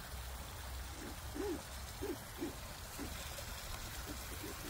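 Geese give soft, low calls.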